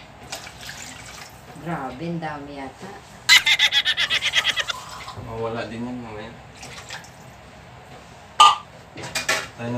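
Liquid pours from a can into a pan of sauce.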